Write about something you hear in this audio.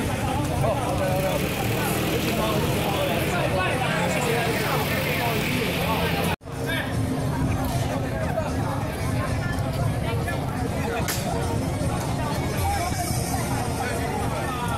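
A crowd of men and women chatter loudly all around outdoors.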